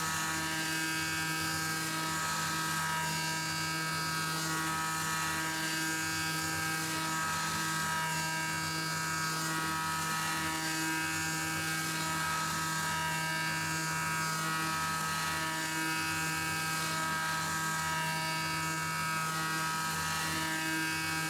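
A cutter grinds and scrapes against metal.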